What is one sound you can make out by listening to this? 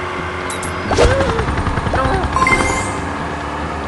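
A bright game chime rings.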